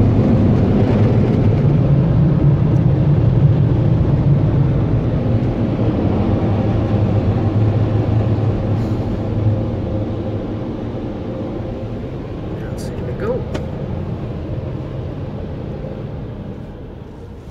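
Car wash machinery rumbles and whirs loudly around a car.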